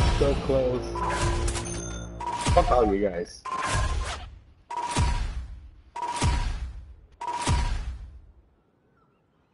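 Short electronic whooshes with chimes sound one after another as a score tallies up.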